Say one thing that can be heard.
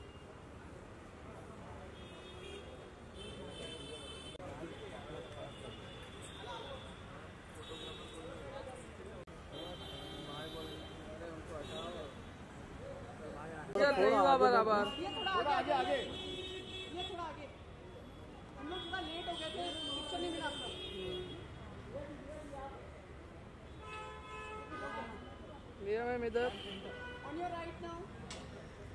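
A crowd of men chatter and call out nearby.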